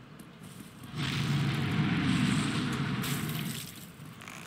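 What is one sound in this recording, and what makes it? A large cloth banner flaps and rustles in the wind.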